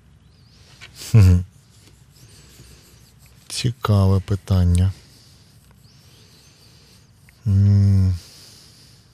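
A man speaks briefly in short bursts close to a microphone.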